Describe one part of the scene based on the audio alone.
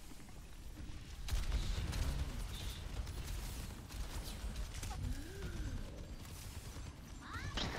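Gunfire and energy blasts crackle in rapid bursts.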